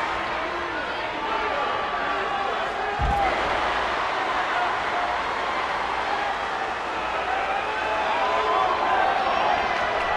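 A large crowd cheers and murmurs steadily in a big echoing arena.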